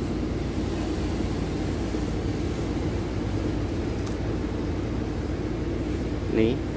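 A bus engine idles with a steady low rumble.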